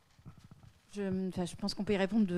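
A woman speaks through a microphone in a large hall.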